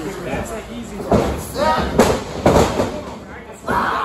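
A wrestler falls onto a ring mat with a thud.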